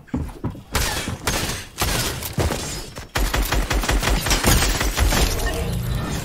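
A shotgun fires in a video game.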